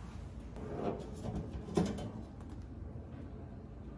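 A metal panel clanks as it is lifted off.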